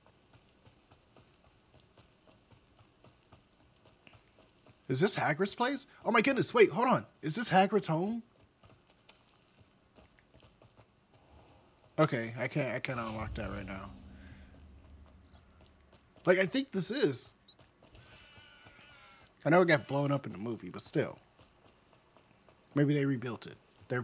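Footsteps patter quickly on a dirt path.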